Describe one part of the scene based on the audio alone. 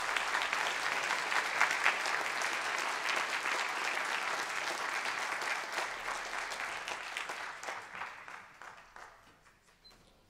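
An audience applauds in a large room, fading away.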